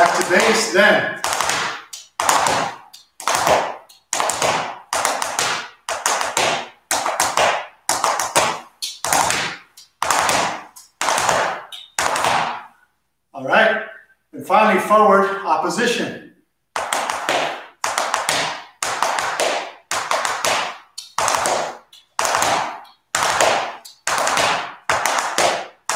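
Shoes shuffle and tap on a wooden floor in a steady rhythm.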